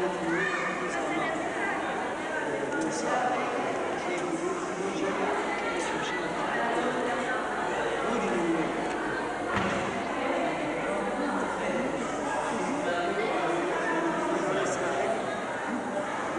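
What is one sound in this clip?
Several men and women chatter at once in an echoing room.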